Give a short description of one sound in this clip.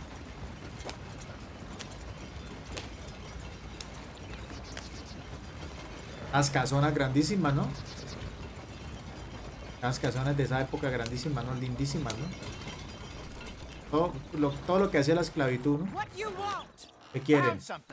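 A horse-drawn carriage rolls along a dirt path.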